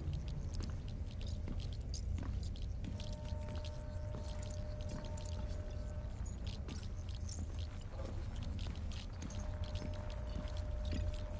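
Footsteps shuffle softly over a wooden floor.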